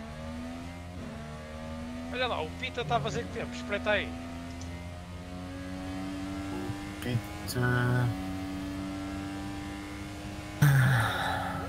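An open-wheel formula racing car shifts up through the gears.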